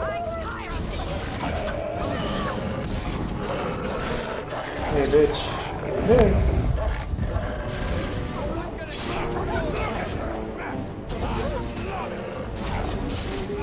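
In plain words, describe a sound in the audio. Beasts snarl and growl.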